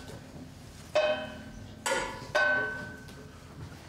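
A string is plucked a few times.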